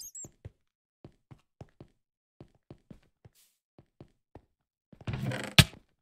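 Footsteps tap quickly on stone blocks.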